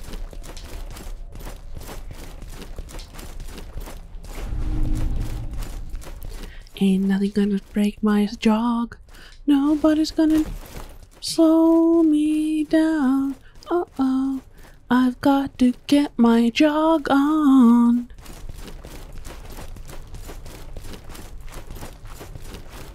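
Footsteps thud steadily on hard stone.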